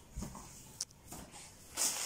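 Fabric rustles softly under a hand smoothing it out.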